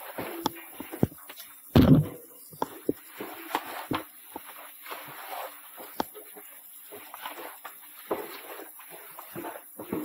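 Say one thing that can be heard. Metal ladder rungs clank and knock under climbing hands and feet, echoing in a narrow stone shaft.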